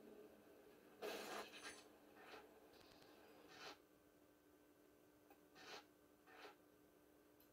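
Short video game menu sounds play from a television speaker.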